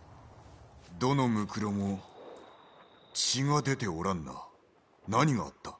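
A second man speaks in a low, grim voice.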